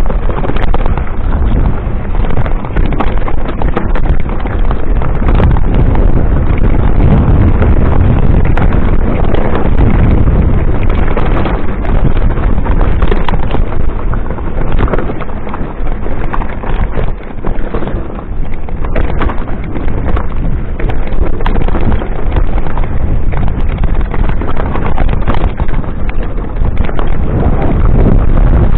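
Tyres of a mountain bike crunch and rattle over a rocky dirt trail.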